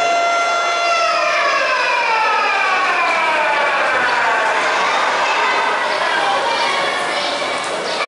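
A man recites in a long, drawn-out singing voice through a microphone.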